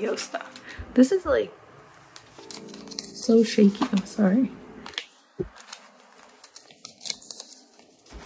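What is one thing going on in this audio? Plastic binder sleeves crinkle and rustle as pages turn.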